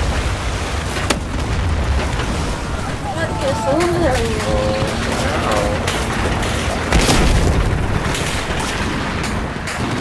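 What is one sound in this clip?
Explosions boom close by.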